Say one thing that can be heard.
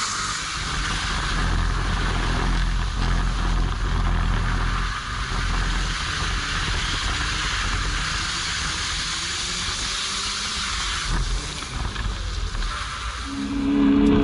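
Wind rushes past a moving car.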